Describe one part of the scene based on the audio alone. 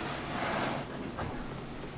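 A spatula scrapes over soft frosting on a cake.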